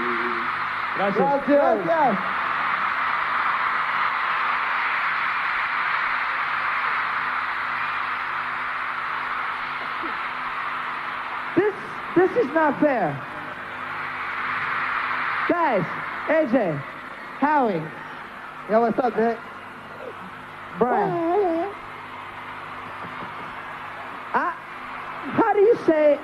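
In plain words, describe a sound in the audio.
A young man sings through a handheld microphone and loudspeakers in a large arena.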